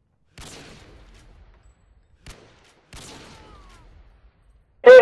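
A sniper rifle fires loud single shots that echo away.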